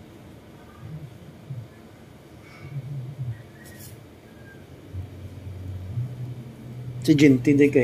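Cuticle nippers snip at a toenail.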